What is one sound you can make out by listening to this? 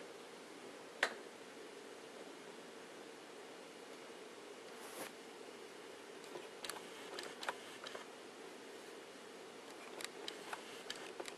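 Buttons on a dishwasher panel click as they are pressed.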